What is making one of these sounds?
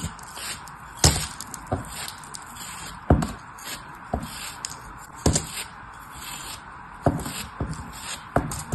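Chunks of sand thud softly as they fall.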